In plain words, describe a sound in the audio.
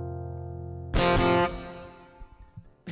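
An acoustic guitar is strummed once.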